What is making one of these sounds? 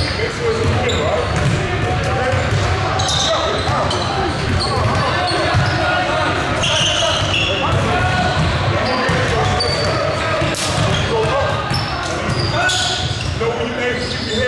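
Young men talk and call out across the gym.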